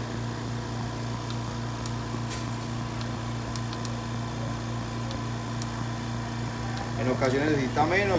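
Buttons click softly as a finger presses them.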